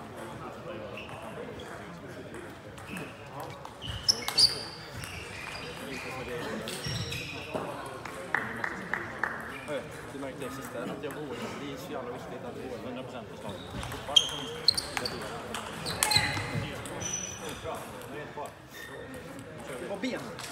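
People chat at a distance in a large echoing hall.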